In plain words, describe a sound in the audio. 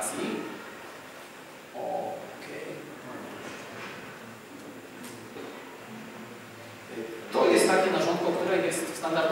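A young man speaks into a microphone over loudspeakers in an echoing hall.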